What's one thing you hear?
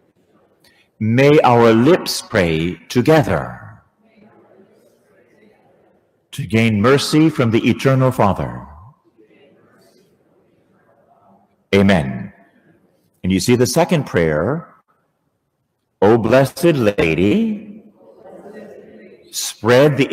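A man speaks calmly through a microphone in a large echoing hall, with pauses between phrases.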